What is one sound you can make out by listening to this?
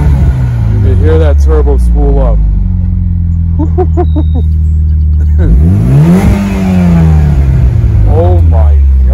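An exhaust pops and crackles after the engine revs.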